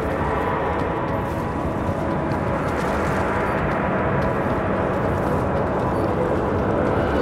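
Flames crackle and hiss.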